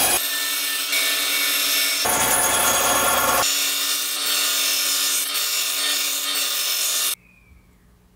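A band saw cuts through wood.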